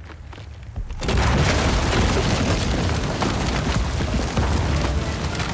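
Stone rumbles and crumbles loudly.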